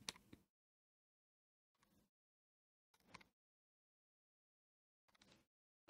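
Calculator keys click softly.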